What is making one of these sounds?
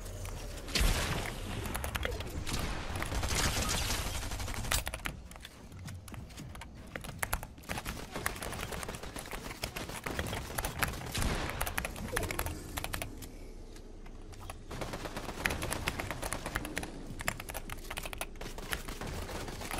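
Building pieces snap into place in quick clicks.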